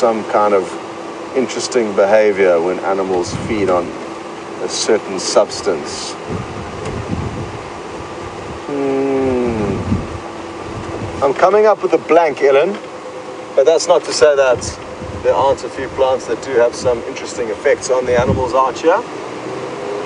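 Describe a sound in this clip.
A man talks calmly into a clip-on microphone, close by.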